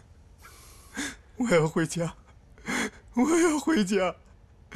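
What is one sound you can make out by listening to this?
A young man mutters in a distressed voice, close by.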